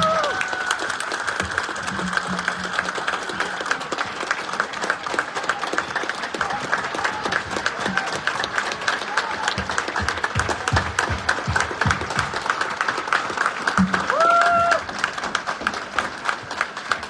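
A large crowd applauds loudly in a big echoing hall.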